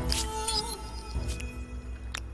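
A bright chime rings out as a game reward unlocks.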